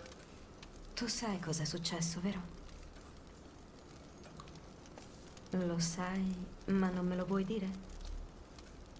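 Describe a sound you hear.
A young woman speaks softly and gently.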